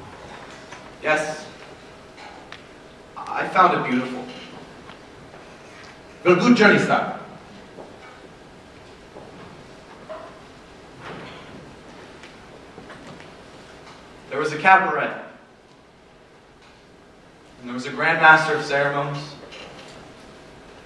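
A man speaks in loud bursts on a stage, echoing through a large hall.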